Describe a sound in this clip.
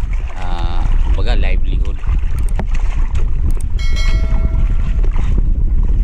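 A large fish splashes at the water's surface.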